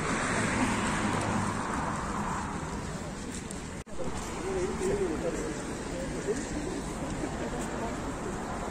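A group of people walks along outdoors, footsteps scuffing on the ground.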